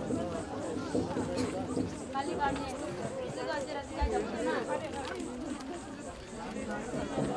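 Dry bamboo strips rustle and creak as they are woven by hand.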